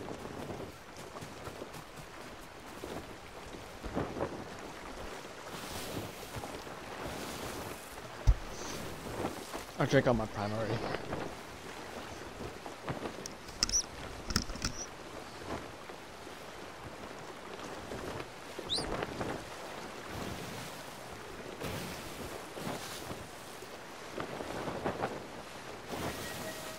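Waves wash against a wooden ship's hull.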